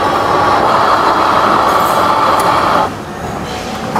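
A coffee machine whirs and grinds loudly.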